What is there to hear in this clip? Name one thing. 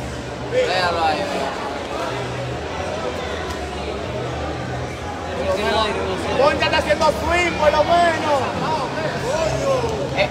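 Spectators shout and cheer at a boxing match.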